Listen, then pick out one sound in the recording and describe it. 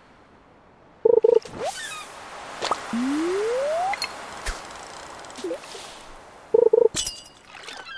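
A short bright alert chimes when a fish bites.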